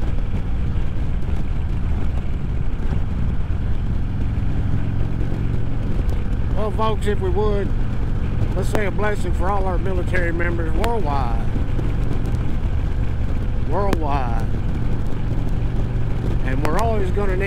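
A motorcycle engine rumbles steadily at cruising speed.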